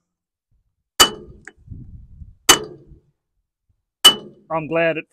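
A hammer strikes metal with sharp ringing blows.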